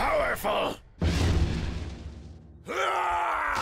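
A roaring burst of energy swells and fades.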